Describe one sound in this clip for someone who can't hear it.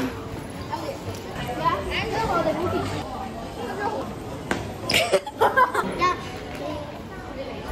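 People chatter and footsteps echo in a large indoor hall.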